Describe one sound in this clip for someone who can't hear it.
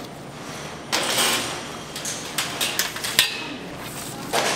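A metal rack rattles as trays slide onto it.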